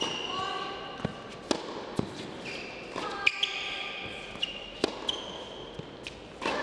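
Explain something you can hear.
A tennis ball is struck with a racket.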